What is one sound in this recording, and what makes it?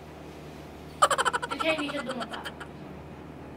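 Young girls laugh loudly in short bursts close by.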